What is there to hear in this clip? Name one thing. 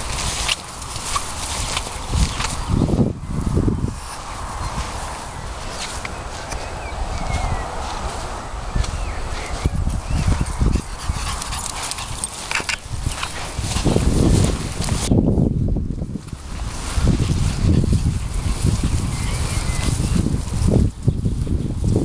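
A small dog patters and rustles across grass.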